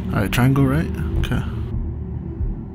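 A young man speaks in a low, quiet voice close by.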